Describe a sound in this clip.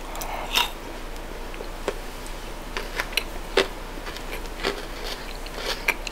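Chocolate is chewed close to the microphone.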